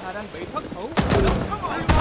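Gunshots bang loudly nearby.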